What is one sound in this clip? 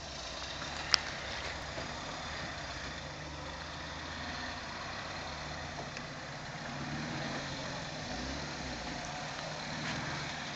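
An off-road vehicle's engine rumbles low as it crawls over rocks.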